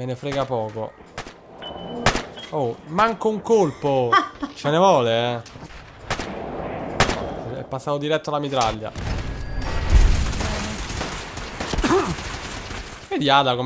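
Laser guns fire in quick bursts.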